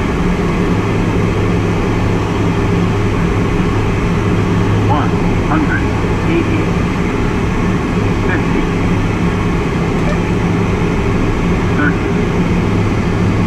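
A small plane's engine drones steadily from inside the cockpit.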